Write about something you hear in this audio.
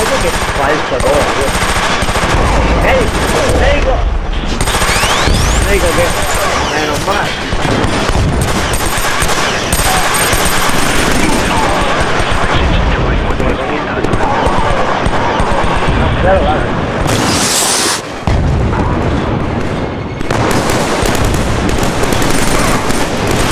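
Automatic gunfire rattles in quick bursts.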